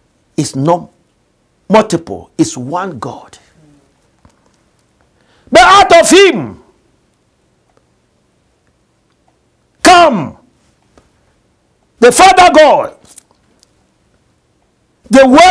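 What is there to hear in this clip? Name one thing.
A middle-aged man preaches with animation into a microphone, speaking in short bursts with pauses.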